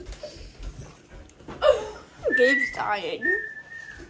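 A young boy laughs loudly nearby.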